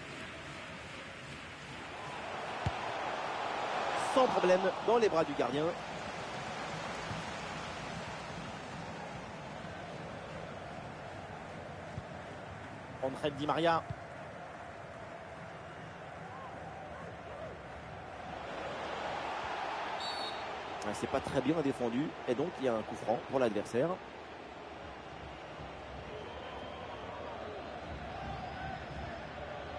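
A large stadium crowd murmurs and cheers, swelling loudly at times.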